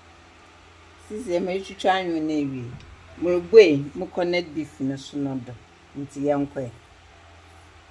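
A can is opened with a metal ring pull.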